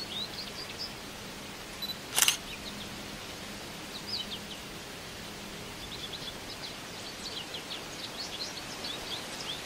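Small birds chirp and twitter in quick high calls.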